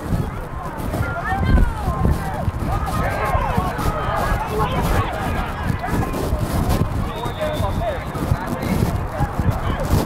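Children and adult coaches shout excitedly nearby.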